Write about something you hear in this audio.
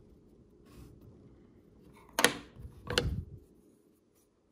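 Loose pieces knock on a wooden tabletop.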